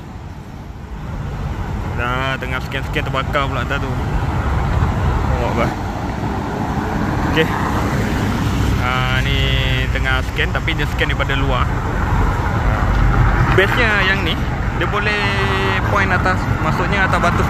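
Traffic rumbles past on a street outdoors.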